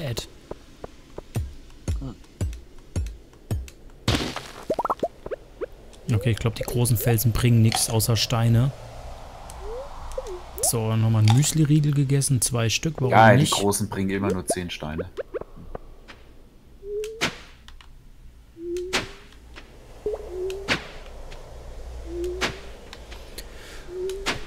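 Pickaxe blows crack against rock in a game, again and again.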